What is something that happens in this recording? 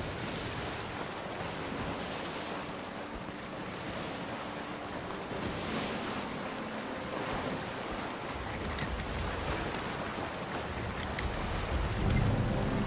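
Wind rushes past billowing sails.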